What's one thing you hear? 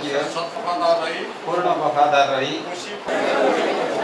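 An elderly man reads out solemnly through a microphone.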